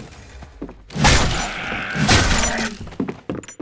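An axe strikes flesh with heavy, wet thuds.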